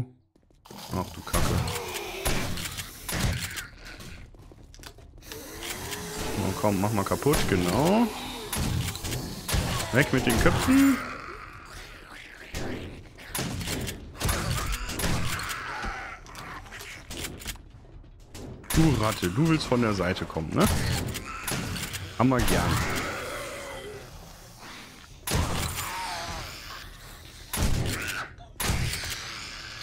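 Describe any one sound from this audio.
Zombies growl and snarl close by.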